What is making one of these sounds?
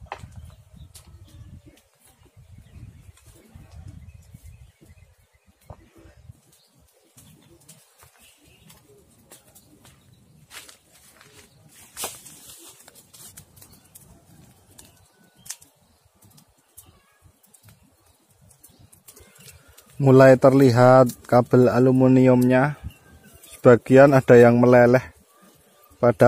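Flames crackle and pop in a burning pile of brush.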